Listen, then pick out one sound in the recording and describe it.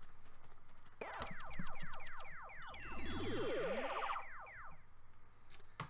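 A video game plays quick bright chiming jingles.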